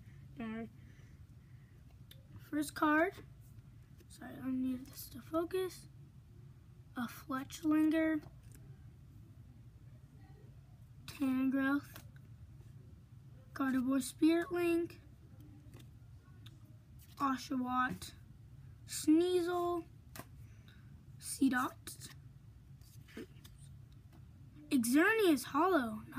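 A young boy talks with animation close by, in short bursts.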